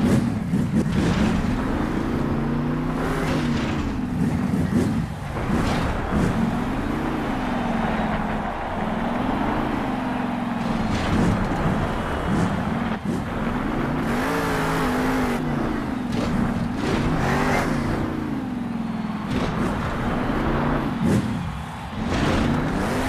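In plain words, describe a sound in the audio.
Big tyres crunch and thud over dirt.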